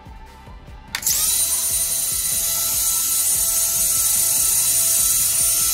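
Small electric motors spin up suddenly and whir with a loud, steady high whine.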